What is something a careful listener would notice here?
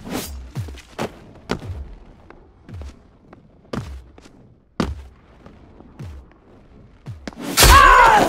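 Footsteps thud on hard wooden boards.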